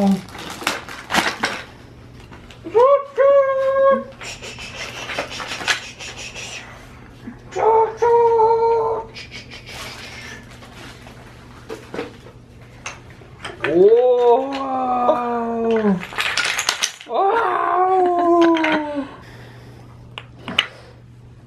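Wooden toy blocks clack and rattle.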